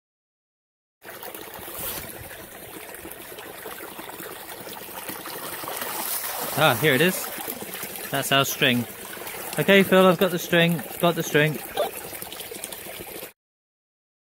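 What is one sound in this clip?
Water gushes from a hose and splashes into a stream.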